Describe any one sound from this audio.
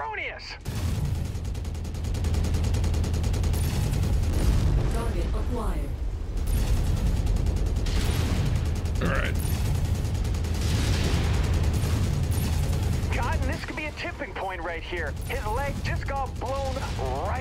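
Heavy guns fire in rapid bursts with deep rumbling.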